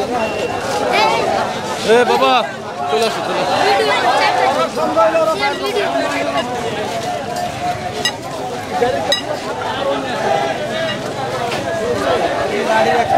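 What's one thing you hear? A crowd of men talk and shout outdoors nearby.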